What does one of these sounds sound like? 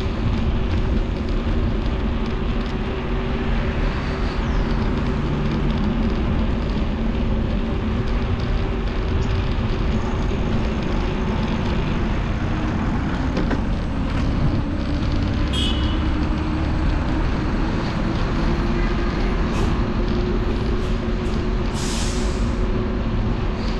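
Wind rumbles steadily past a moving bicycle.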